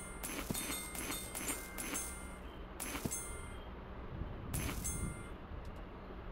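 Bright game chimes ring quickly as coins are collected.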